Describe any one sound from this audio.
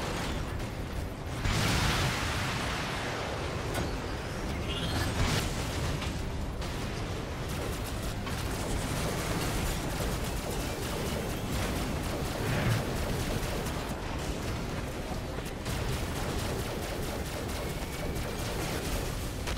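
Futuristic guns fire in rapid bursts.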